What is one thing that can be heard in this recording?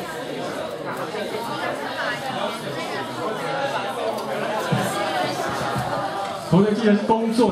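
People in an audience chatter quietly.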